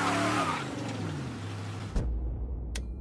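A car engine roars and revs loudly, then winds down.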